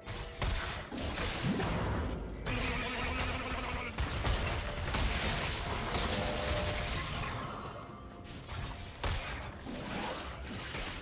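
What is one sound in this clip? Spell effects crackle and burst in a fast game fight.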